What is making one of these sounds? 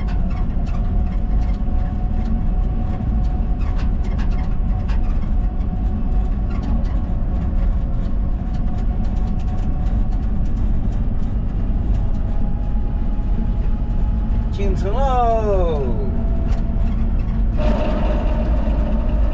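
Wind rumbles steadily against a moving vehicle.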